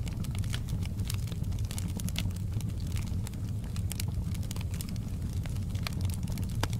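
Flames roar low and steady.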